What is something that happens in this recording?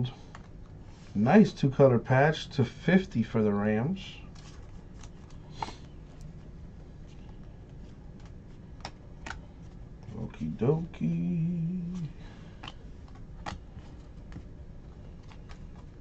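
Trading cards rustle and click as they are handled and shuffled close by.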